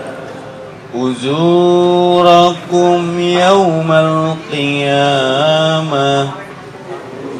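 A young man chants melodically into a microphone.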